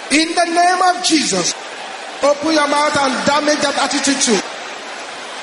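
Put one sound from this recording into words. A man speaks with emphasis into a microphone.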